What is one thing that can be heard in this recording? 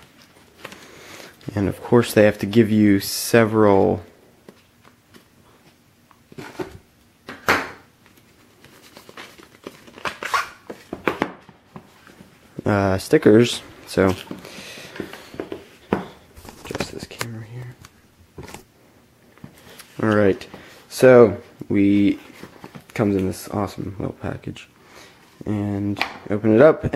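A cardboard box rubs and taps as hands turn it over.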